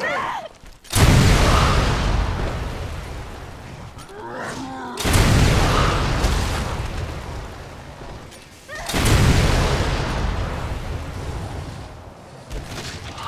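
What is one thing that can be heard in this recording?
Heavy gunshots boom, each followed by a long rumbling echo.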